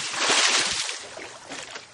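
Feet stomp on a wooden stage.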